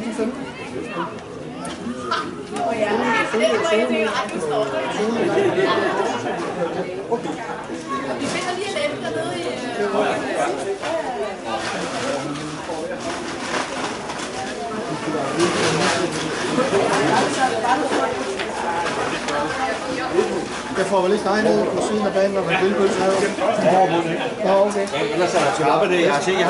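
Young men shout and call to each other in the distance outdoors.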